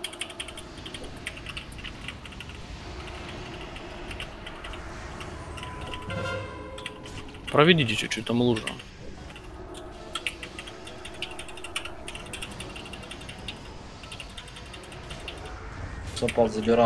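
Magic spells crackle and whoosh in a busy fantasy battle.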